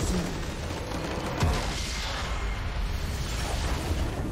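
A crystal structure shatters with a loud burst.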